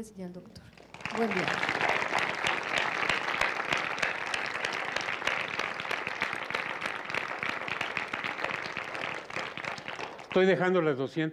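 An elderly man claps his hands.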